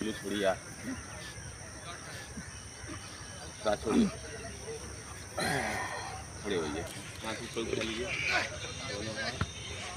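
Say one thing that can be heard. A man talks nearby in a calm voice, outdoors.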